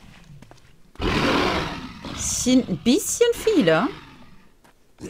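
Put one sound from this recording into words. A large beast roars and snarls loudly.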